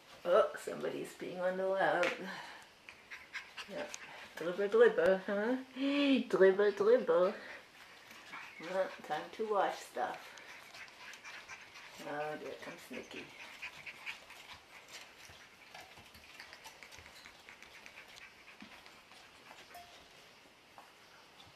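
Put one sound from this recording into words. Small puppy paws patter softly on a hard floor.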